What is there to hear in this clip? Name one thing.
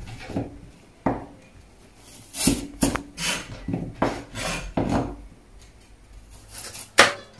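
A cleaver chops through a carrot on a plastic cutting board.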